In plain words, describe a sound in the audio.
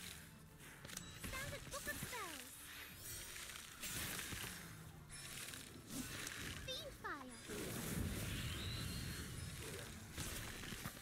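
Fantasy battle sound effects clash, whoosh and thud.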